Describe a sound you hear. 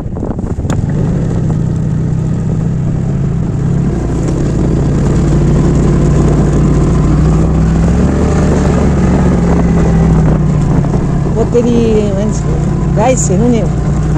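Tyres rumble over a rough dirt track.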